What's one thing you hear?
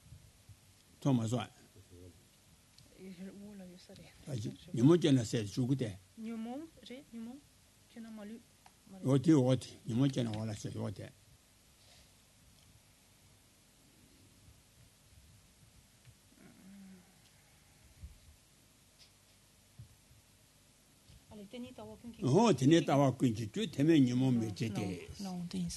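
An elderly man speaks calmly into a microphone, pausing often.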